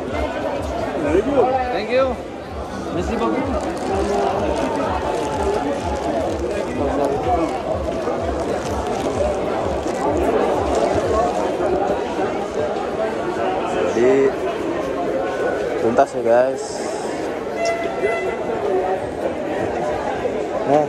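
A crowd of men and women chatter loudly all around.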